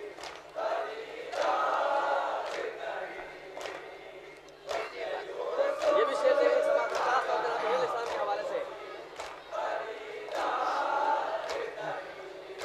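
Hands beat on chests in a steady rhythm.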